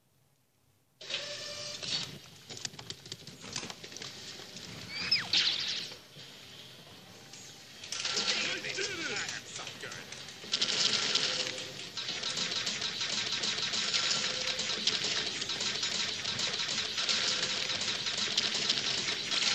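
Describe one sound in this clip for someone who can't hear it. Video game sound effects clatter and crash through a television speaker.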